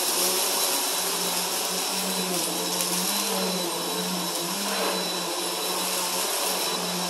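An upright vacuum cleaner hums and whines steadily as it runs over carpet.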